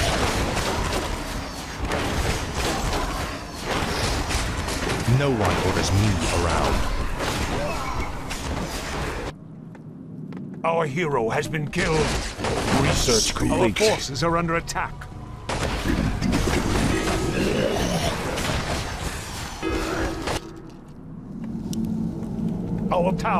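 Game battle sounds of clashing weapons and crackling spells fill the air.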